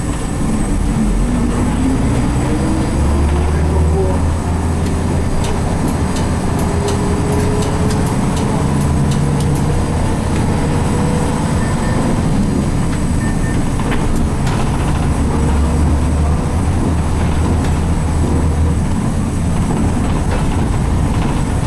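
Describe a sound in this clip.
A bus engine hums and revs as the bus drives along a street.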